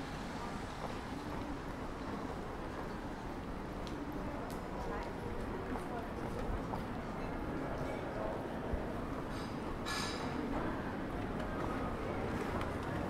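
Footsteps tap on wet paving stones.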